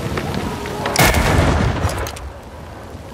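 A rifle fires with a loud, booming bang.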